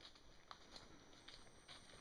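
A man's footsteps crunch on dry leaves.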